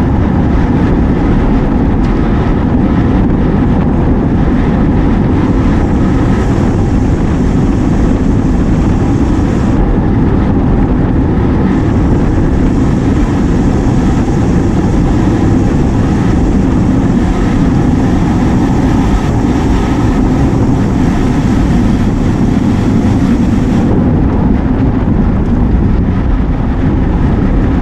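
Wind rushes loudly over a microphone while riding outdoors.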